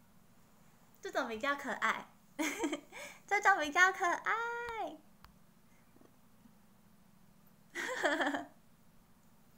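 A young woman speaks and laughs playfully, close to a microphone.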